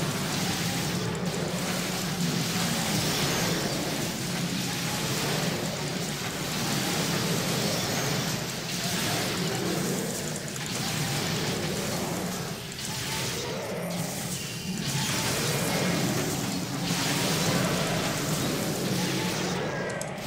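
Weapons clash and spells burst in a busy fight.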